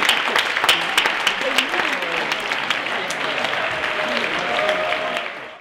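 A big band of saxophones and horns plays jazz in an echoing hall.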